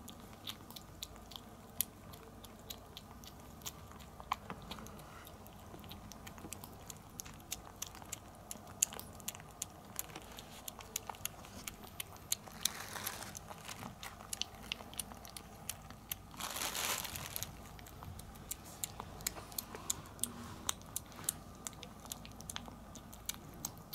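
A kitten chews and smacks wet food up close.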